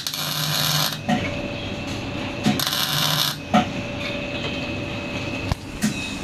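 A welding torch crackles and sizzles in short bursts.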